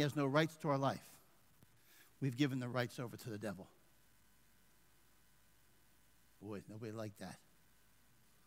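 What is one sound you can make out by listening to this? A middle-aged man speaks forcefully into a headset microphone, in short bursts with pauses.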